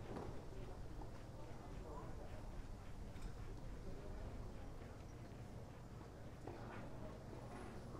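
Spectators murmur faintly in the distance outdoors.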